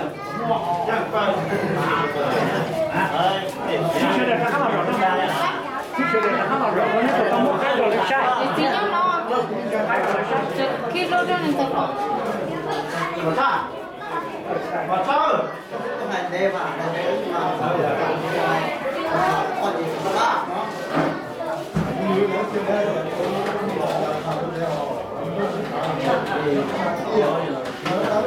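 A crowd of adults chatters in a room with bare, echoing walls.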